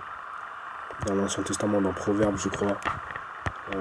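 A man speaks quietly, very close to the microphone.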